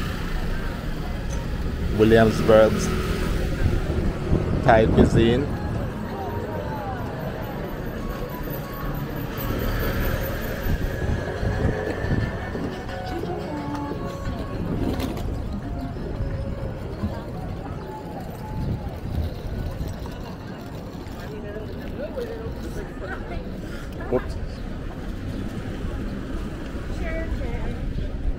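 Street noise and crowd chatter fill the air outdoors.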